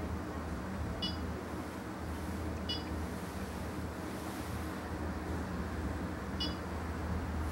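A touchscreen gives short electronic beeps as it is pressed.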